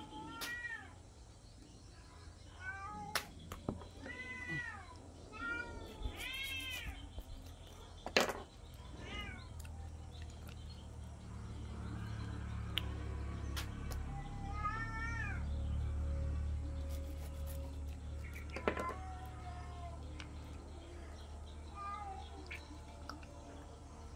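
A small blade scrapes scales off a fish.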